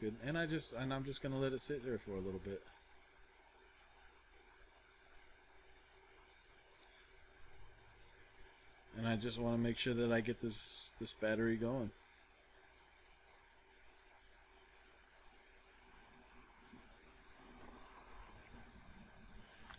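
A small screwdriver scrapes and clicks against a plastic connector.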